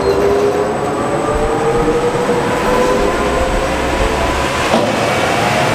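A large fan blows with a loud steady rush.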